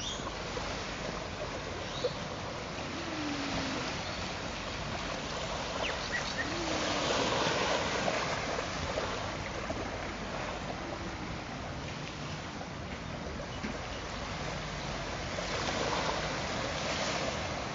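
Small waves wash gently onto a beach.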